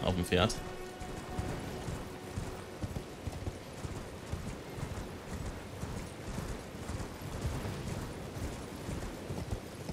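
Horse hooves thud steadily on grass.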